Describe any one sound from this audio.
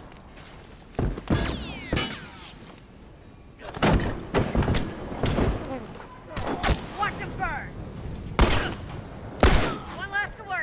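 Gunshots fire in sharp, loud bursts.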